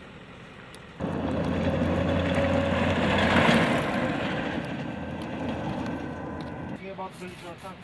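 A heavy military vehicle engine roars as it drives past on a dirt track.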